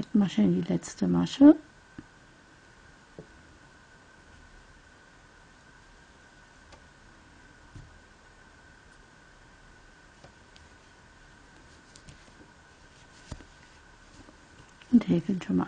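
A crochet hook pulls thick yarn with a soft rustle.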